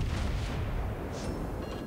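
Heavy ship guns boom in the distance.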